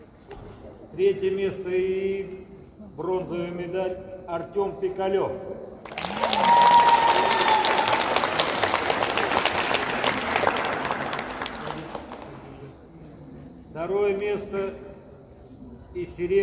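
A man announces loudly in a large echoing hall.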